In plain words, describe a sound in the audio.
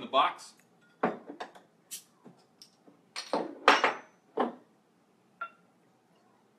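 A bottle cap pops off.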